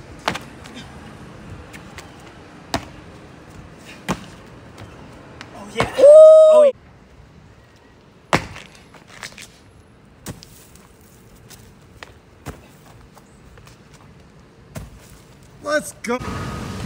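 Sneakers land with thuds on stone and concrete.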